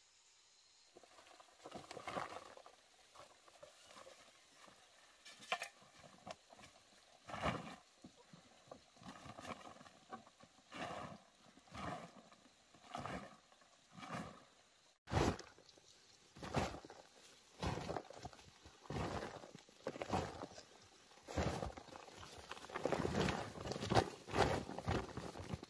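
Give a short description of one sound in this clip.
A woven plastic sack rustles and crinkles.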